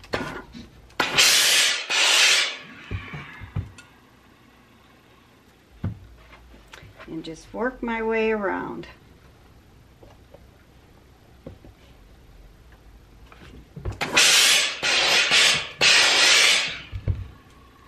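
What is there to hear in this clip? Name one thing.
A steam iron hisses in short bursts.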